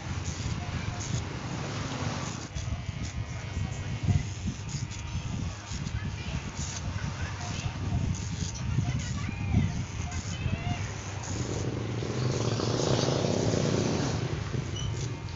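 A comb rustles through hair.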